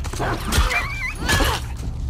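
A blunt weapon strikes with a heavy thud.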